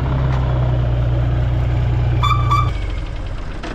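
A truck engine idles with a deep, steady rumble, then shuts off.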